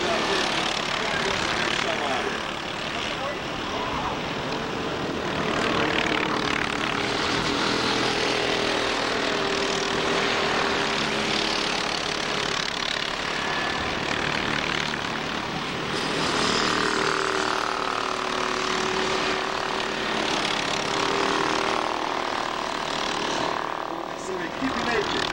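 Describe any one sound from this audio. Kart engines whine at high revs as the karts race past.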